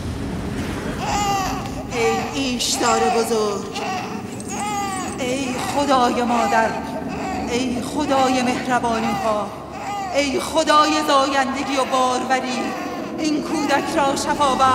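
A woman chants loudly and with feeling.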